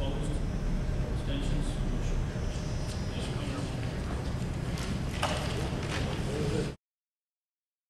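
A man speaks calmly through a microphone in a large echoing hall, heard from a distance.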